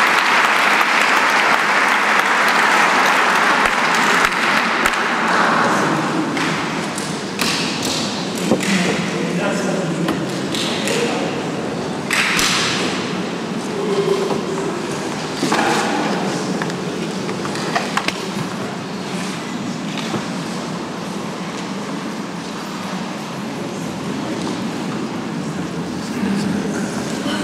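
People murmur and chat nearby.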